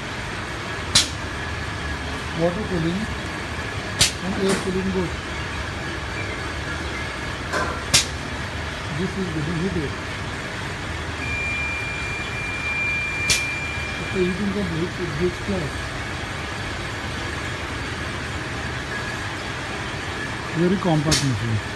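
Machines click and knock sharply now and then.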